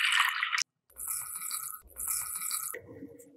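Sugar pours from a spoon into milk.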